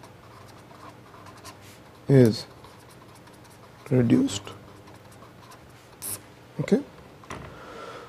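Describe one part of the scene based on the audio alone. A marker pen squeaks and scratches across paper.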